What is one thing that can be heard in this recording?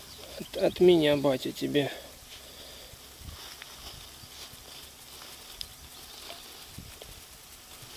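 Plastic flowers rustle as a hand arranges them.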